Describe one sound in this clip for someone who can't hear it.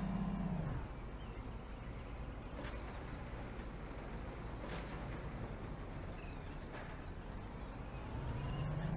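A bus engine hums and whines as the bus drives slowly.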